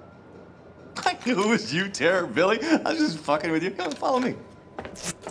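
A man speaks cheerfully and laughs.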